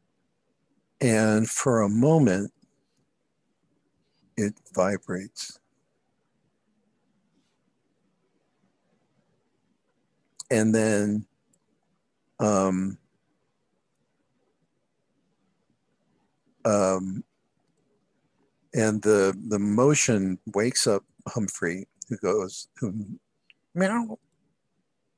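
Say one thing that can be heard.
A man talks in short bursts over an online call, heard through a headset microphone.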